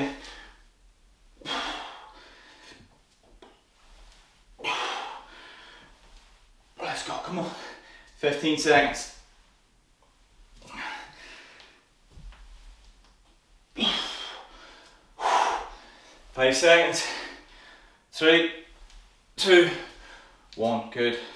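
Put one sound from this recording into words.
A man breathes out hard while exercising.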